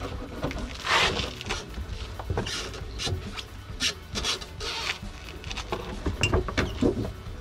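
Metal parts clink and knock close by.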